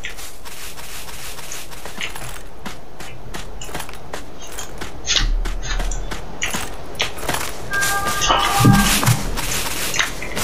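Footsteps run quickly over dry sand.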